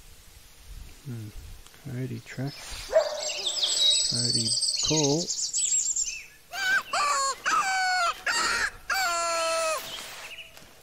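A hand-held animal call is blown repeatedly, making short, wavering pitched cries.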